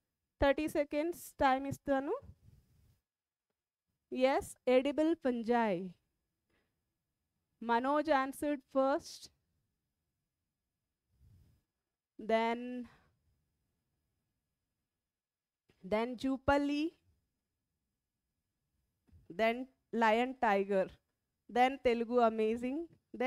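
A woman speaks with animation into a close microphone, in short bursts with pauses.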